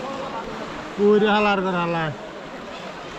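A man calls out loudly close by.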